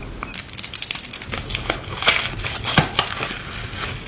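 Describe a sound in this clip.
A peel-off glitter mask crackles and tears as it is pulled from skin.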